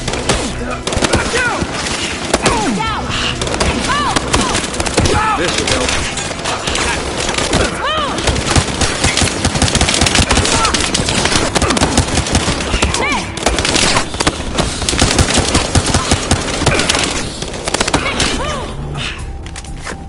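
Gunshots crack rapidly in bursts.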